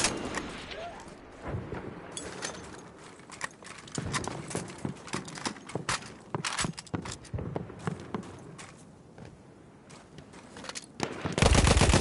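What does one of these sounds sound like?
Gunshots crack in the distance, on and off.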